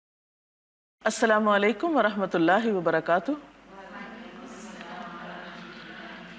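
A woman chants in a slow, melodic voice close to a microphone.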